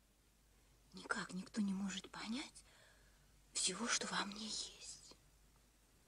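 A young woman speaks softly and earnestly, close by.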